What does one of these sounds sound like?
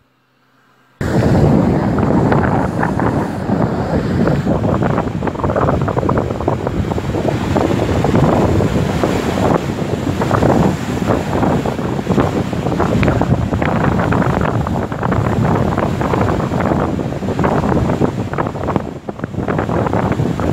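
Waves wash and break onto a sandy shore.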